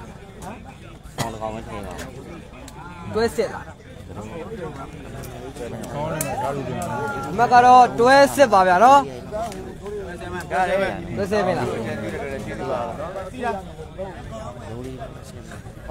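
A large crowd cheers and shouts outdoors.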